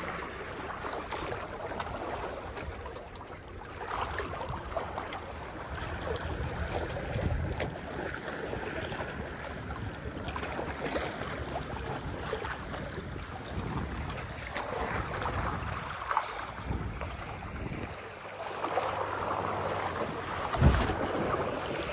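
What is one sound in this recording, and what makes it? Waves lap and splash against rocks nearby.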